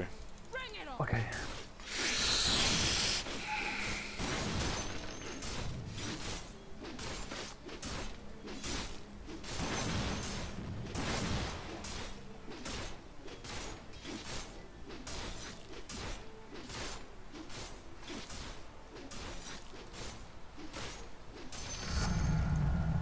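Game combat effects clash and thud.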